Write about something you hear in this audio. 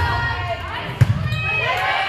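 A volleyball is struck with a hard slap.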